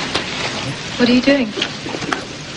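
A young woman speaks through a television loudspeaker.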